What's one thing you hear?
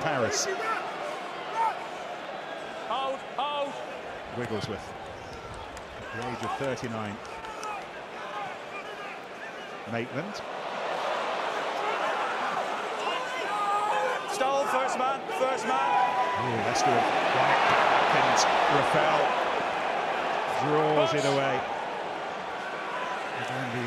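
A large stadium crowd roars, swelling loudly toward the end.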